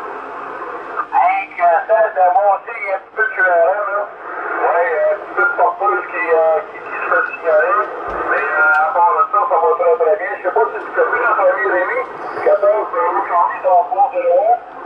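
A man talks with animation over a crackly radio loudspeaker.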